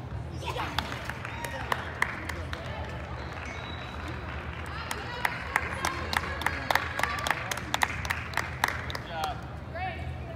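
A crowd of spectators cheers in a large echoing hall.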